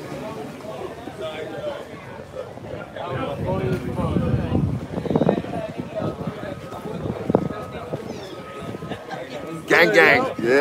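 People chatter nearby outdoors.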